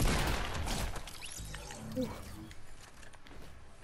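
A game elimination chime rings out.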